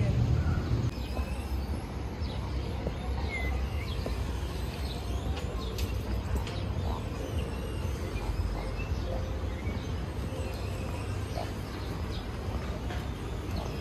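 Birds chirp and call outdoors.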